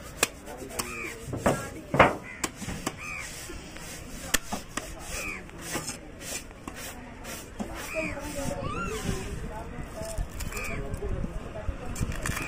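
A heavy knife chops through fish on a wooden block.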